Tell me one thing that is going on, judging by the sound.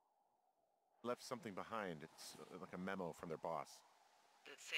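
A man speaks calmly into a handheld radio.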